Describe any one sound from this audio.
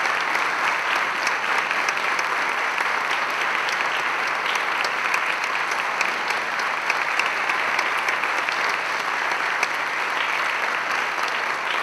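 A small orchestra plays a lively dance tune.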